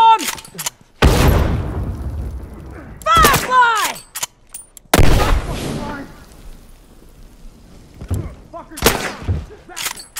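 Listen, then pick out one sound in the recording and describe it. Gunshots ring out loudly, one after another.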